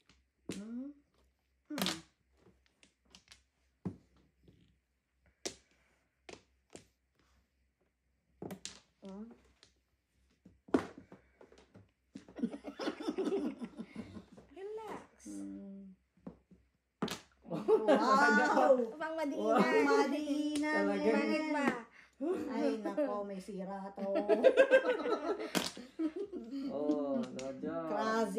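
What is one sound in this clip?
Mahjong tiles click and clack against each other on a table.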